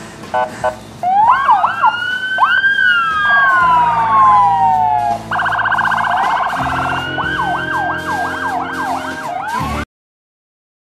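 A police siren wails and warbles close by.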